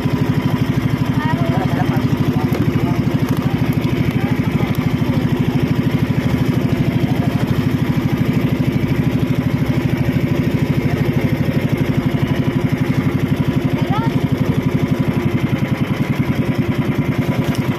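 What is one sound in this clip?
A boat engine chugs loudly and steadily close by.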